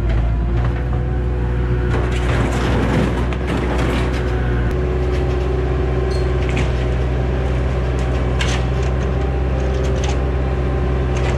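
A diesel engine rumbles steadily close by.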